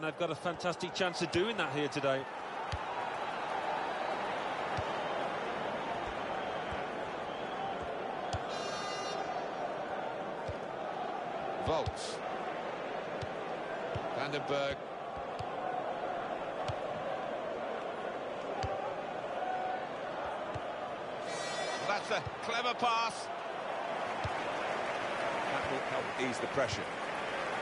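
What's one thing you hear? A stadium crowd murmurs and roars steadily.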